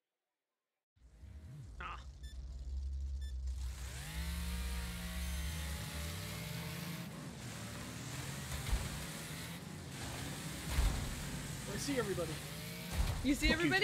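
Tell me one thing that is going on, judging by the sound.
A car engine revs and roars.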